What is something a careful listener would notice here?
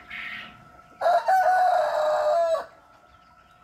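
A rooster crows loudly close by.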